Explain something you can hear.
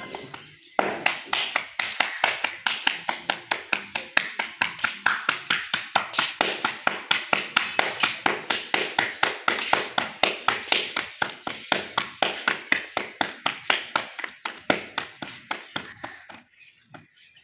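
Hands pat and slap dough quickly in a steady rhythm.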